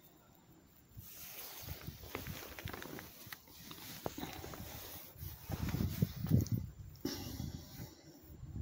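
Fabric of a jacket rustles and brushes close by.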